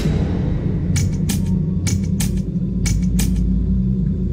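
A countdown clock ticks loudly with sharp clicks.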